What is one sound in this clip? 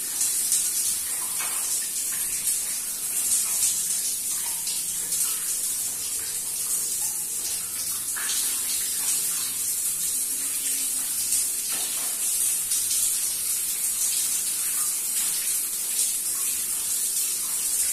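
A man scrubs his wet hair with his hands.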